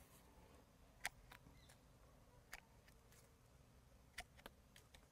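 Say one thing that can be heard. Pruning shears snip sharply.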